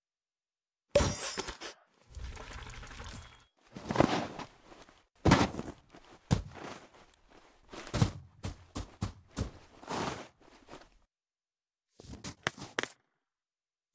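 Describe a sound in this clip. Snow crunches and packs in quick bursts as a snowman is built.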